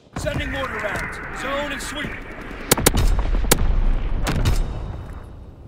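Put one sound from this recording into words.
Rifle shots fire in quick bursts.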